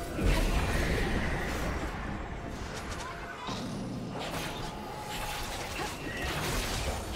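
Game spell effects whoosh and crackle in bursts.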